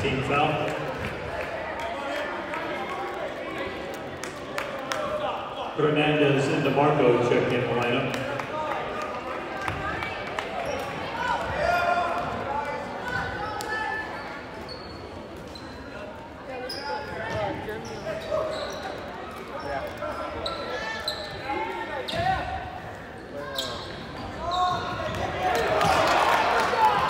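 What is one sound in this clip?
A crowd of spectators murmurs and cheers in a large echoing gym.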